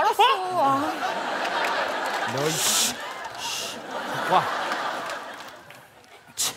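An audience laughs loudly in a large room.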